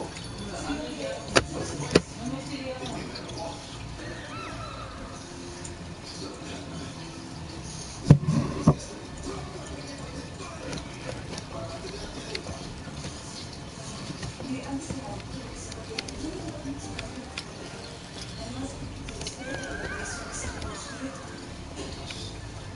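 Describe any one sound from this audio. Game menu sounds click and chime.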